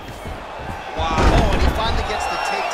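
A body slams onto a mat with a heavy thud.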